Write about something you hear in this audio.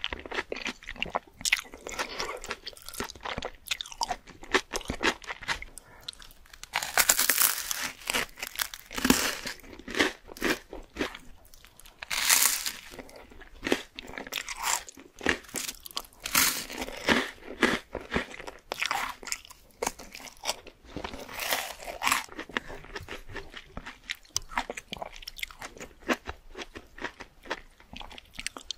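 A woman chews and smacks her lips close to a microphone.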